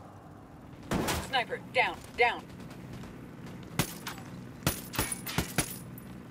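Rifle shots crack sharply several times.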